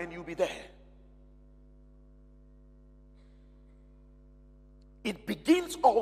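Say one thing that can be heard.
A man speaks with feeling through a microphone, pausing between phrases.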